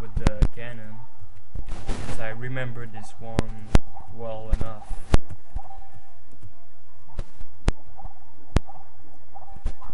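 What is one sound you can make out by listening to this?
Cartoon water splashes as a game character swims.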